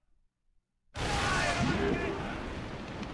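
A cannon blast booms and crackles.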